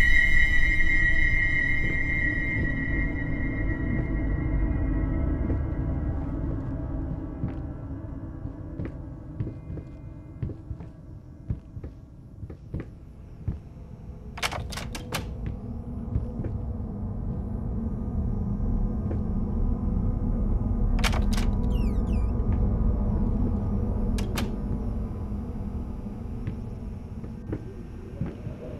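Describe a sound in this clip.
Footsteps thud slowly on wooden floorboards.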